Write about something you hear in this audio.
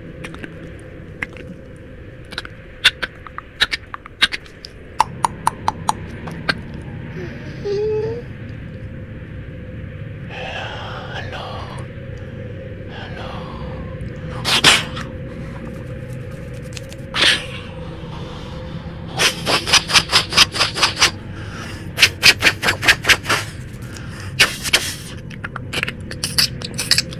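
A man raps into a microphone.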